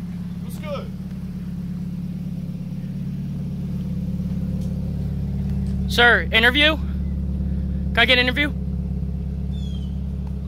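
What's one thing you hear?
A car engine idles nearby with a steady low hum.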